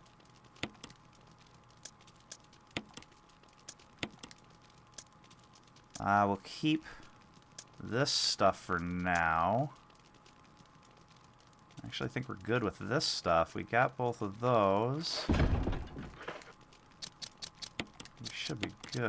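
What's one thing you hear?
Soft menu clicks tick as a cursor moves between items.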